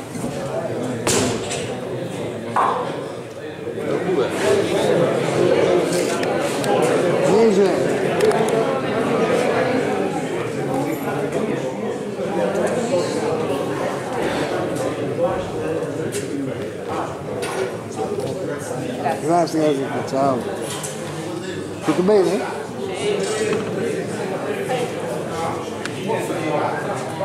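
Men talk in a murmur throughout, in a large echoing hall.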